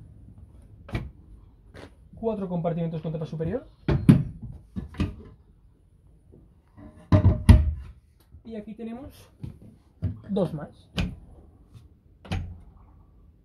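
Wooden cabinet doors knock and click shut.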